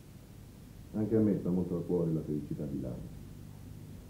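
A middle-aged man speaks firmly nearby.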